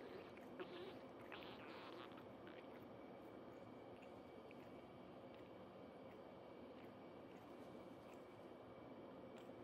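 A cat licks its fur with soft, wet rasping sounds close by.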